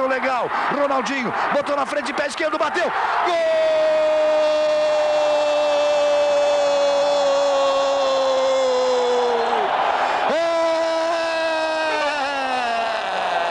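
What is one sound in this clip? A large crowd roars and cheers in a stadium.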